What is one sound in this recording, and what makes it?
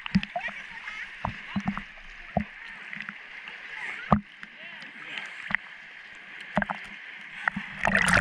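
Small waves lap and splash against rocks.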